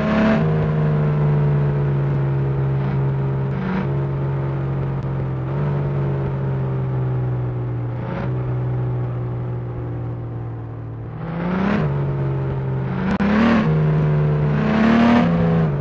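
A truck engine hums steadily and revs up and down through gear changes.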